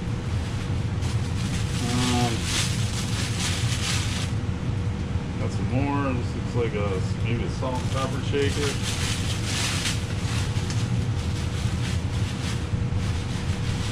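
Paper crinkles and rustles as it is unwrapped.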